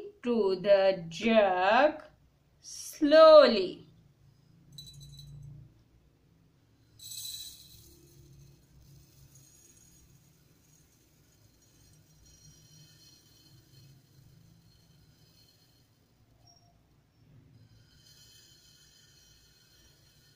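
Dry rice grains pour and rustle into a glass jar.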